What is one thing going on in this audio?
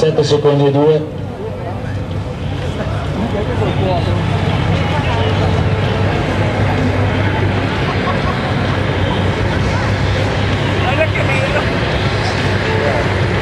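A motorcycle engine roars steadily and grows louder as it approaches.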